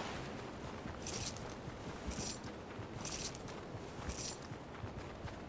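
Short bright chimes sound as items are picked up.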